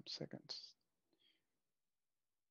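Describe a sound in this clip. A man speaks briefly and calmly through a headset microphone.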